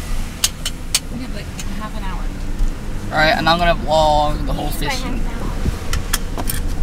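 A car engine hums steadily from inside the cabin.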